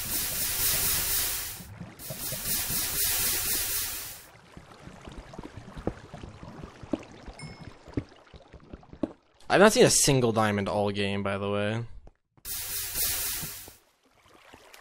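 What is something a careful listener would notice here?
Water rushes and splashes.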